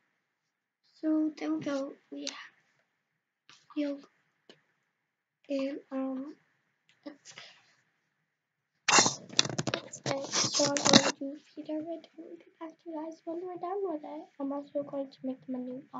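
A young girl talks close by, with animation.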